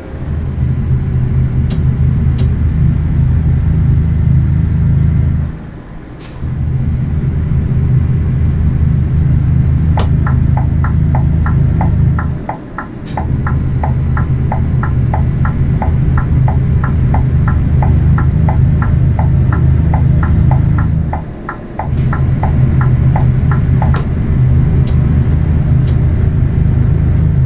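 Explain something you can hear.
A truck engine drones steadily, dropping away briefly with each gear change.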